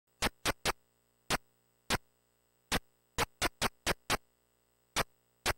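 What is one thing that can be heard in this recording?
Short, sharp video game step sounds tick in uneven bursts.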